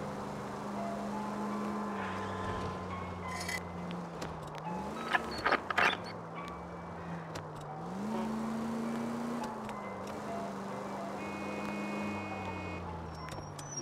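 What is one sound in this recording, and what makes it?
A car engine hums steadily, its pitch rising and falling as it speeds up and slows down.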